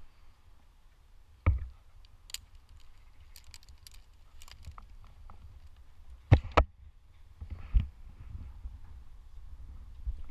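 Metal climbing gear clinks and rattles.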